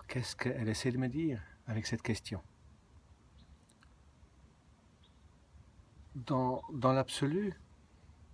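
A middle-aged man speaks calmly and close to the microphone, in short bursts with pauses.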